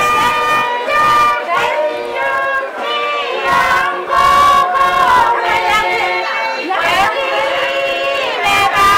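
A group of women sing together loudly and steadily.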